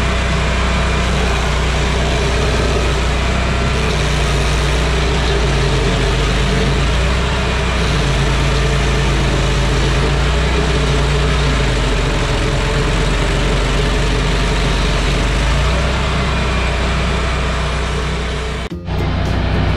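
A stump grinder's cutting wheel chews through wood.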